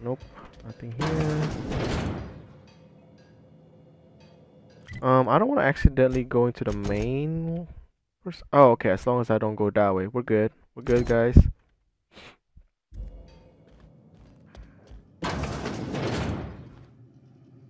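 A heavy metal door slides open with a whoosh.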